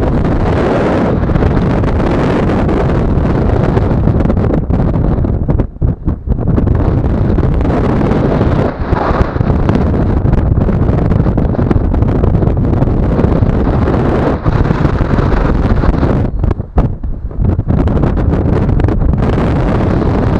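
Strong wind roars and buffets loudly outdoors.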